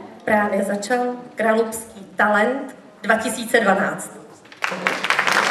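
A young woman sings through a microphone in a large hall.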